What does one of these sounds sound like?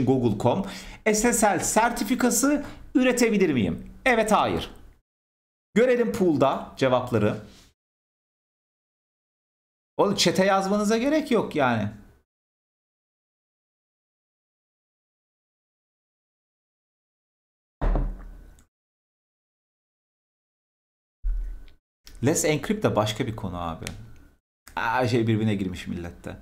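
A man talks with animation into a close microphone, pausing often.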